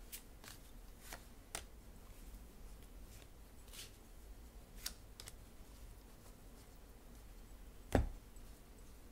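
Small objects tap and click softly close by.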